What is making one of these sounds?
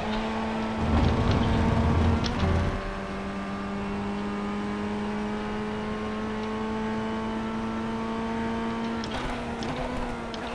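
A racing car engine drones steadily at high revs, with gear shifts changing its pitch.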